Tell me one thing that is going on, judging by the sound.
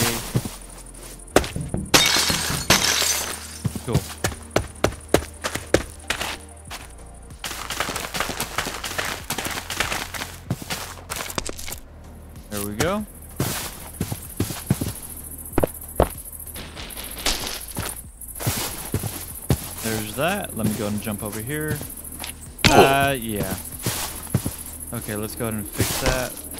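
Footsteps thud on grass and stone.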